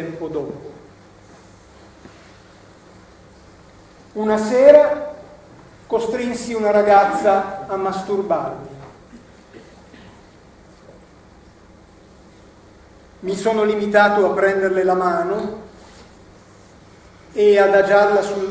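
A middle-aged man speaks expressively in bursts, with long pauses.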